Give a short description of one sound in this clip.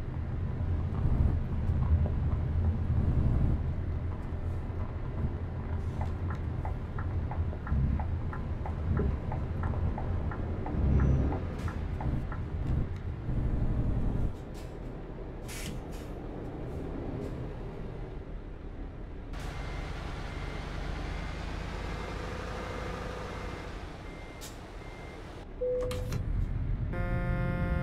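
A truck engine rumbles low and steadily, louder at first and then quieter.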